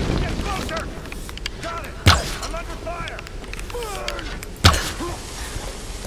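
A bowstring snaps as an arrow is loosed from a bow.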